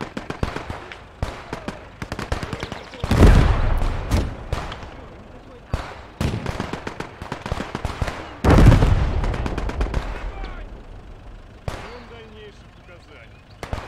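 Rapid gunfire crackles throughout.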